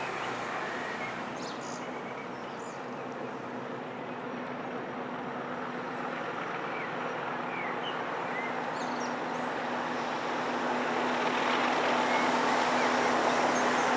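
A train engine rumbles in the distance and grows steadily louder as it approaches.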